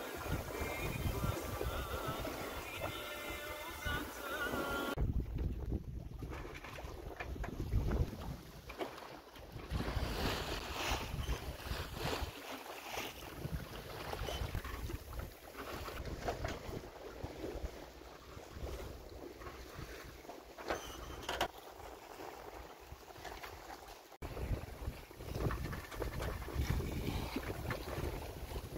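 Waves splash and rush against a moving boat's hull.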